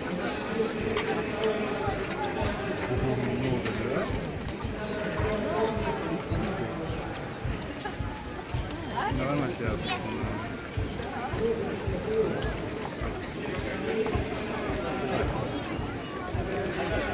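A large crowd chatters and murmurs all around outdoors.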